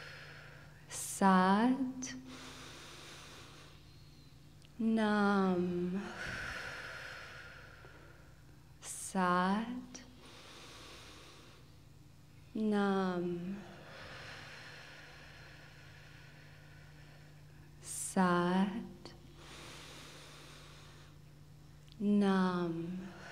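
A young woman sings short, wavering phrases into a microphone in a reverberant hall.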